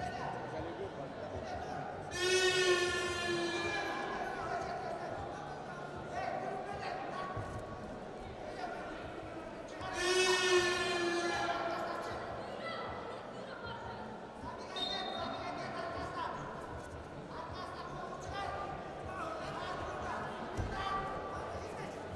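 A crowd murmurs steadily in a large echoing hall.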